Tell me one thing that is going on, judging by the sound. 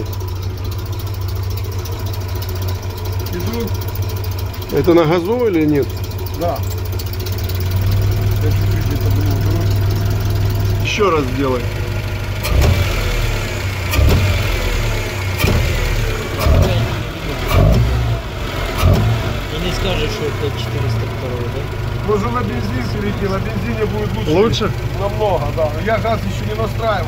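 An engine idles with a steady low rumble.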